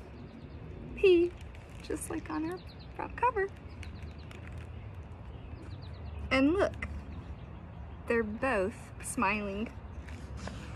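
A woman reads aloud close by, with lively expression.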